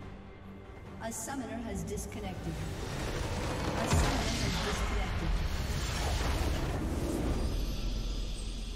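Game spell effects whoosh and crackle in a fight.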